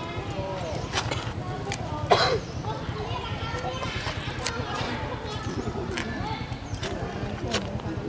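A monkey bites and chews juicy fruit up close.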